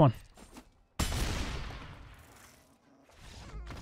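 A heavy magical impact booms and slowly fades.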